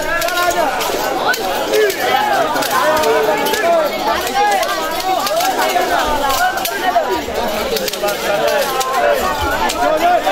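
Metal chains and blades clash and strike repeatedly.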